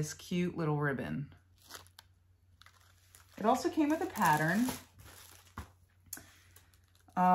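Paper rustles as a package is handled.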